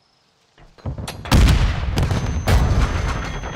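Gunfire rattles loudly in a quick burst.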